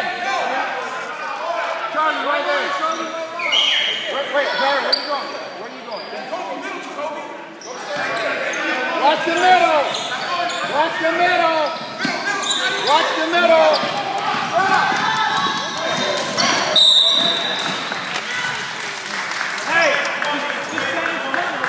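Many voices of a crowd chatter and shout in a large echoing gym.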